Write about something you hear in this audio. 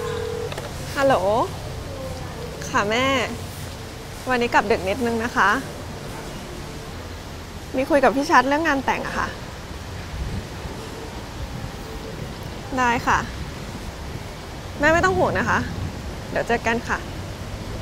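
A young woman talks calmly and warmly on a phone nearby.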